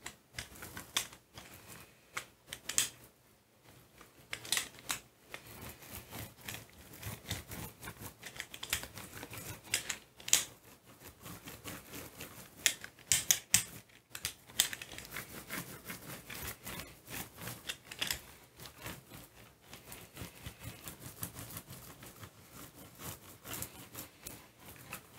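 A rubber roller rolls with a sticky crackle across a glass plate.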